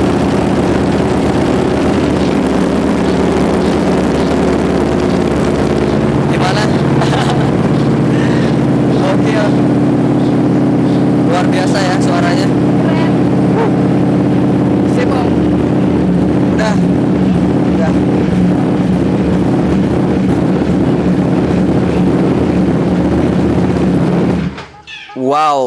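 A motorcycle engine runs with a steady, deep rumble close by.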